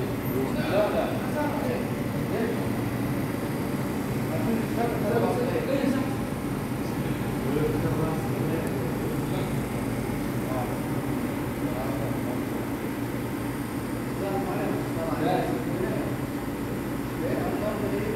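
An espresso machine hums and whirs steadily while brewing.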